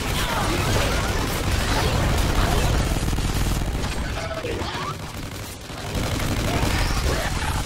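A creature shrieks and snarls.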